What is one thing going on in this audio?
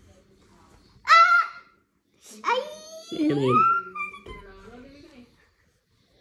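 A teenage girl laughs loudly close by.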